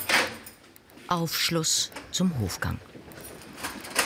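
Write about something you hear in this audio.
A door clicks open.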